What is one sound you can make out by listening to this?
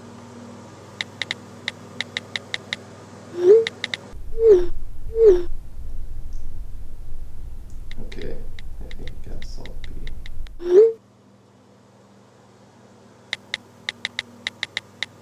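A phone's keyboard clicks rapidly with each tap of typing.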